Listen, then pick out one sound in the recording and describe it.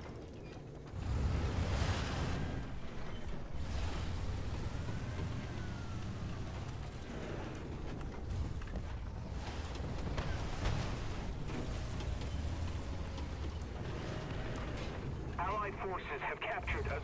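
A heavy tank engine rumbles low and steady.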